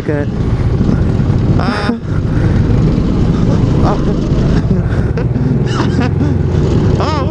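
A go-kart engine rumbles loudly and steadily up close.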